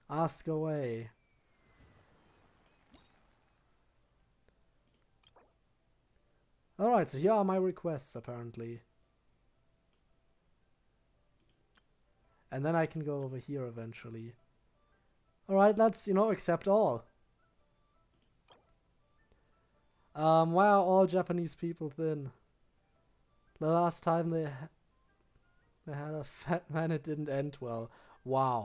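A young man talks with animation into a close microphone, in short bursts with pauses.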